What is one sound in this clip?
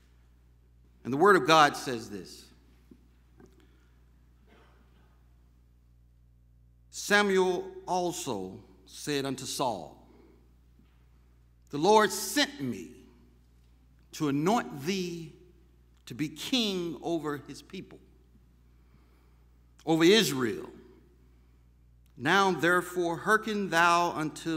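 A middle-aged man reads out slowly and deliberately through a microphone, with long pauses.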